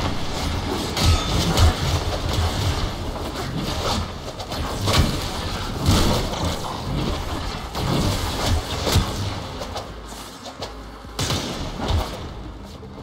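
Energy blasts burst with loud thumps.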